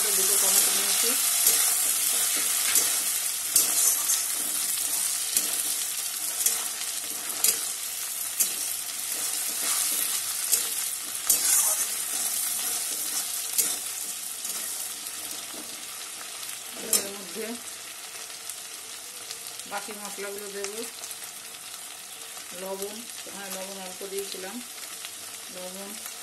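Food sizzles in hot oil, loud at first and slowly quietening.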